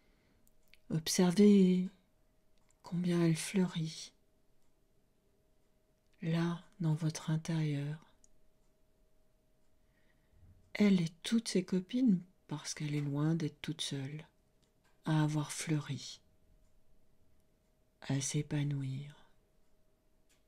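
An older woman speaks slowly and calmly into a close microphone, with long pauses.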